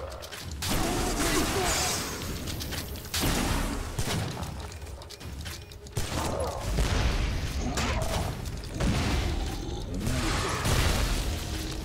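A crossbow fires bolts with sharp twangs.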